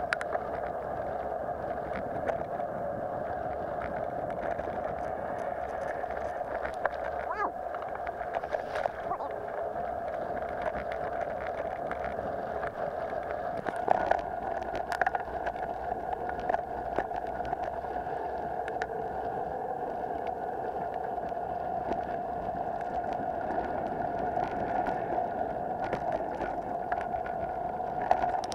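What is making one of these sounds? Bicycle tyres roll steadily over a dirt track.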